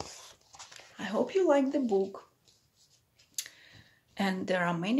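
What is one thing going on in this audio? A woman speaks warmly and close to a microphone.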